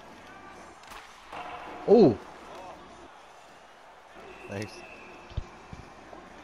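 A hockey stick smacks a puck with a sharp crack.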